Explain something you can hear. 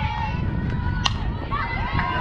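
A bat cracks against a ball once.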